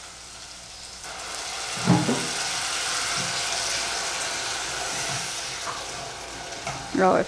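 A wooden spoon stirs sizzling food in a pot.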